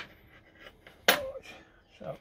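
Metal scissors clink down on a table.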